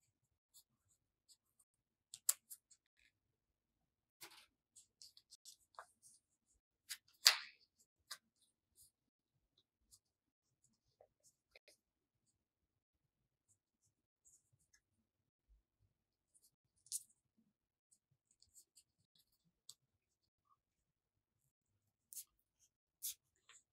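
Scissors snip through paper in short, scattered cuts.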